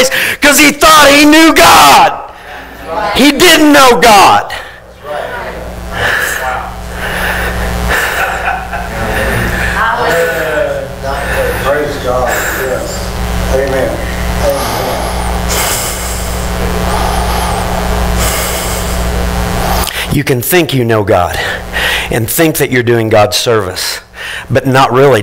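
A man preaches with animation through a microphone, heard with some room echo.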